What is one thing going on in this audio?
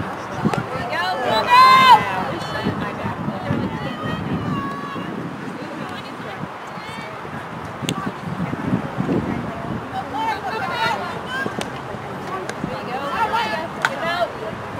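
A hockey stick cracks against a ball.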